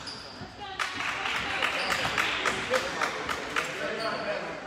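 Spectators clap in an echoing gym.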